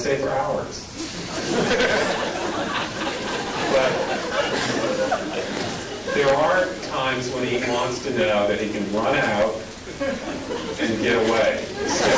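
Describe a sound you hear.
A man speaks steadily through a microphone in a large hall.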